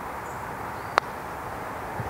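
A golf putter taps a ball with a single crisp click.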